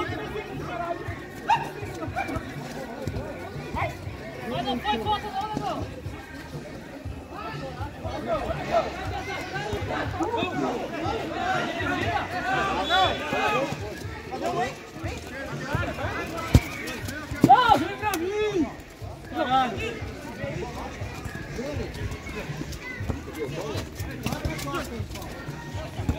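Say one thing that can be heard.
A football thuds off a player's foot.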